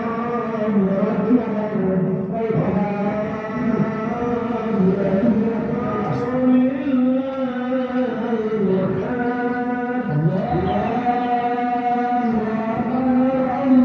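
A crowd of men chants together in a slow, drawn-out melody outdoors.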